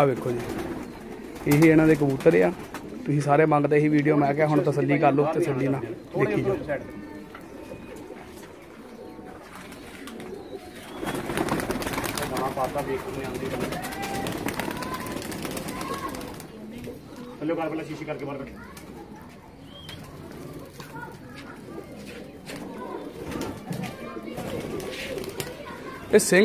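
Pigeons coo softly close by.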